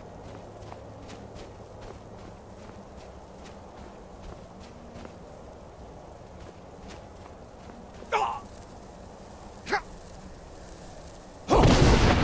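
Magic crackles and hums softly.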